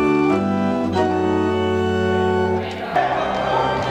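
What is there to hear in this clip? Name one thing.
An organ plays chords.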